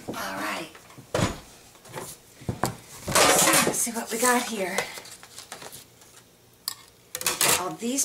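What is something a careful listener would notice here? Plastic plates clack together as hands handle them.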